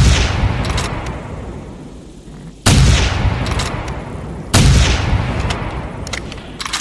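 A shotgun's pump action racks with sharp metallic clacks.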